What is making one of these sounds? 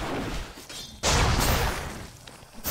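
A loud burst of a spell explodes with a roar.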